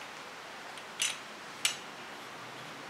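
A microphone clicks into a metal holder.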